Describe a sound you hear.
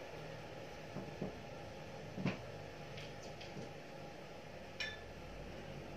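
Plates clink and knock against a glass tabletop.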